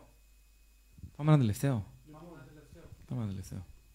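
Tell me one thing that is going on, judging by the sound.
A young man speaks louder into a microphone, with animation.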